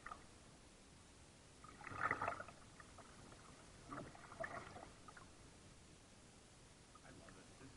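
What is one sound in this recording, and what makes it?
A paddle splashes and dips into calm water nearby.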